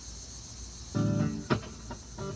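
An electric guitar strums loudly through an amplifier.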